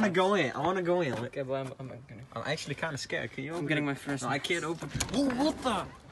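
A metal door handle clicks as a door is pushed open.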